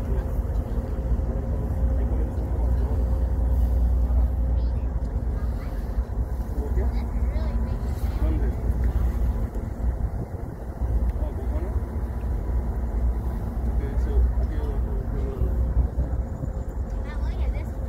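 A boat's engine rumbles steadily.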